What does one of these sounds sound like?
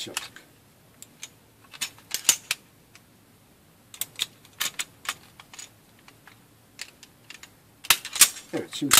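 A pistol's metal parts click and clack as it is handled.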